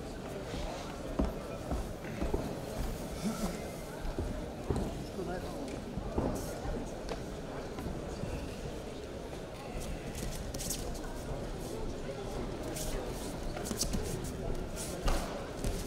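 Bare feet shuffle and thump on a padded mat.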